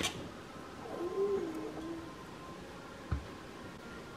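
A banana is set down on a counter with a soft thud.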